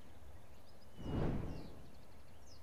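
A wooden gate swings open with a heavy thud.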